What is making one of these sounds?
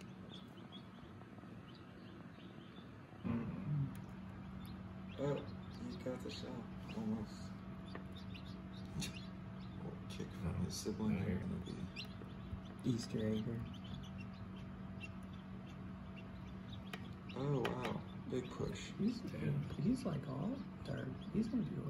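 Newly hatched chicks peep softly, close by.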